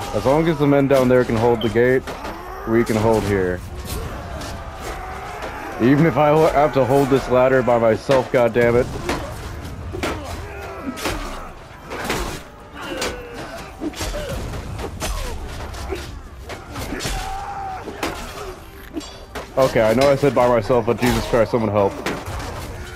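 Swords and spears clash and thud in close fighting.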